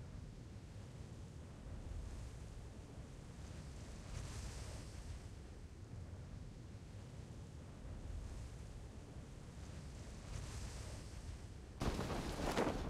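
Wind rushes steadily during a parachute descent.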